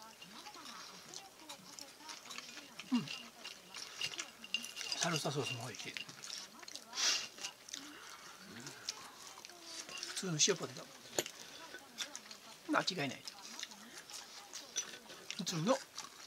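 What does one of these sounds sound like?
A woman chews and slurps food close by.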